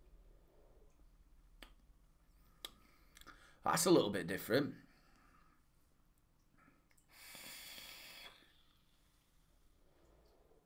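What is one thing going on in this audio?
A man blows out a long breath of vapour.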